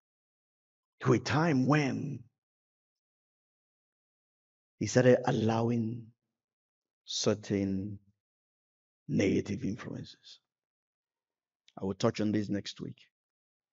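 A man speaks with animation through a microphone, in short bursts with pauses.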